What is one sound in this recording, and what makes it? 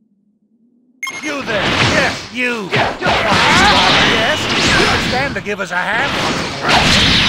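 Energy blasts whoosh and crackle loudly in a fight.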